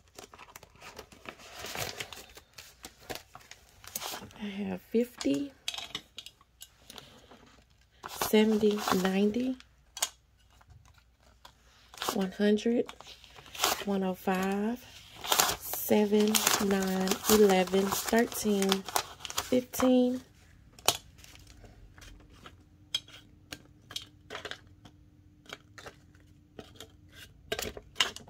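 Paper bills rustle and crinkle as they are handled and counted.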